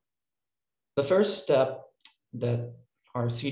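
A young man speaks calmly through an online call microphone.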